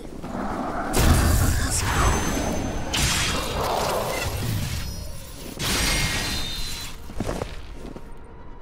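Blades clash and strike heavily in a fight.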